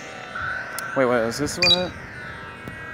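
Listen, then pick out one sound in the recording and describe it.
Electronic game sound effects chime in quick bursts.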